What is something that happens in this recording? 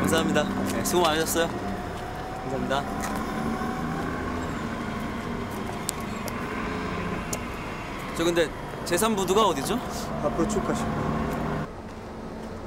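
A young man speaks cheerfully nearby.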